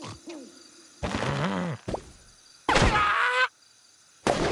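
A cartoon bird squawks as it flies.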